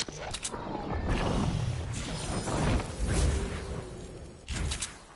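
A rushing whoosh of gliding through the air swells and fades.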